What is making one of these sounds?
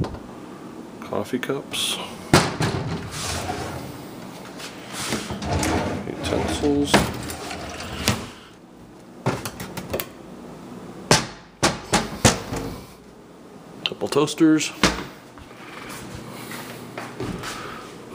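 Wooden cabinet doors knock and click as they open and shut.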